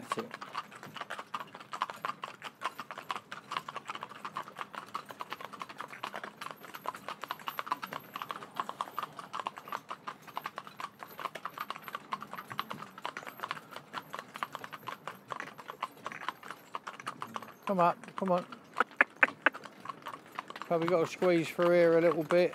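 Horses' hooves clop steadily on a paved road.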